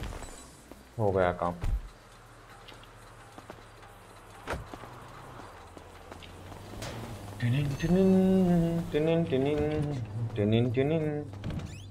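A young man talks casually into a close microphone.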